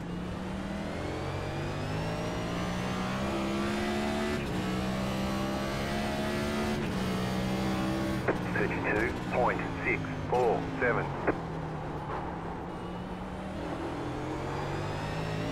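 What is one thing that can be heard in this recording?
A race car engine roars loudly, its pitch climbing and dropping with each gear change.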